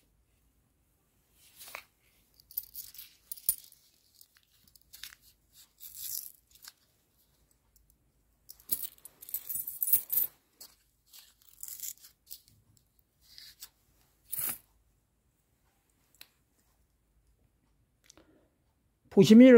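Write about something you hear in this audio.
Coins clink together in a hand.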